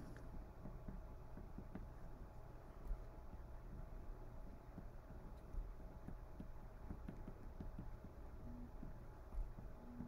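A felt-tip marker squeaks and scratches on paper.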